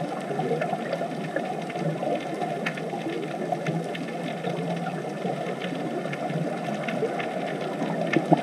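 Scuba divers' exhaled bubbles gurgle and rumble steadily underwater.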